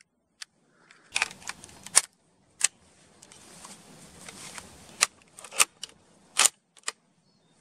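A rifle's bolt clicks and clacks metallically.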